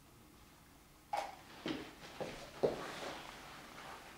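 A plastic bottle knocks on a wooden board.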